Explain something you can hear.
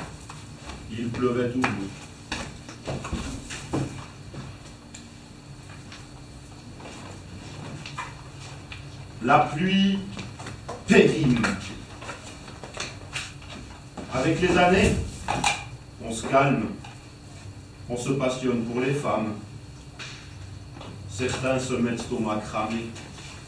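A young woman vocalizes loudly in short bursts in an echoing room.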